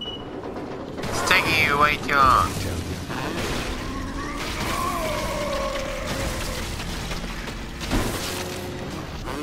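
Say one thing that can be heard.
Electricity crackles and zaps in loud bursts.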